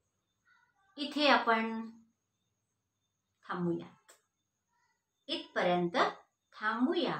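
A middle-aged woman speaks calmly and clearly, close by, in short phrases with pauses.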